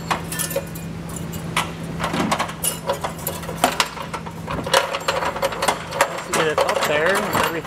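Plastic clips and panels click and rattle up close.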